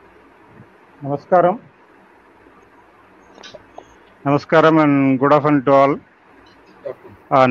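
A middle-aged man speaks in short bursts over an online call.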